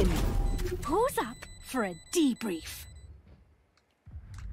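A short victory jingle plays with rising and falling tones.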